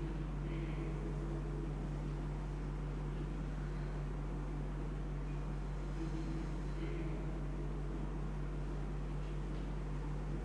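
A man speaks calmly into a microphone, heard over a loudspeaker in an echoing room.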